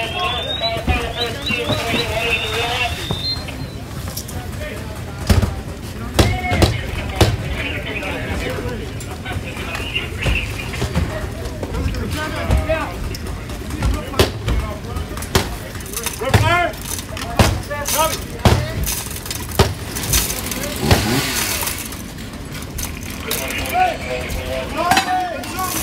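Men call out to each other outdoors.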